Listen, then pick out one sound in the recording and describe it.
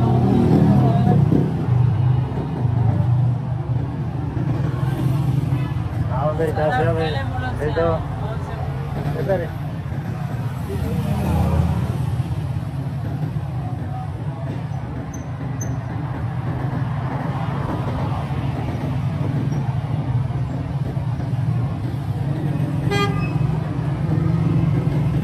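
Traffic rumbles along a street outdoors.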